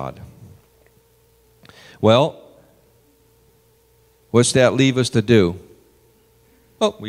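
A man speaks slowly and deliberately into a microphone, heard in a large room with a slight echo.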